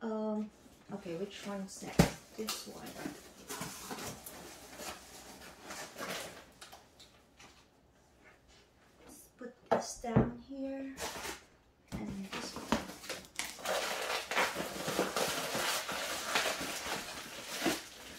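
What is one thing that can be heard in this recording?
Cardboard flaps rustle and scrape as a box is opened.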